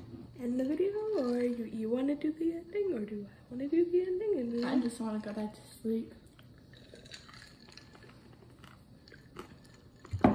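A young person gulps a drink.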